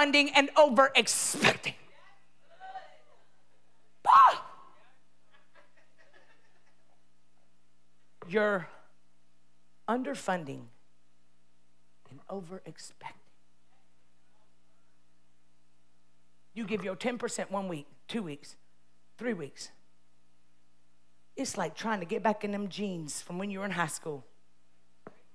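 A woman speaks with animation through a microphone, pausing often.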